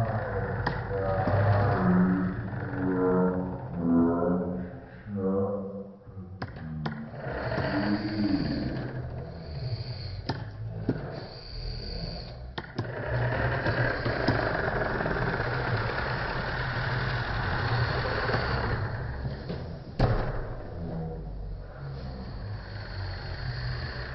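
A small toy car whirs as it rolls across a wooden floor.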